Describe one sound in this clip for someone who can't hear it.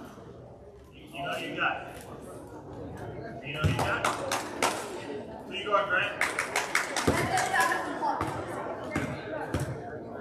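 Young players shout and call out across an echoing gym.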